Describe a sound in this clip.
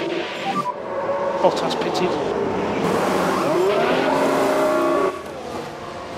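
Pneumatic wheel guns whir and rattle during a pit stop.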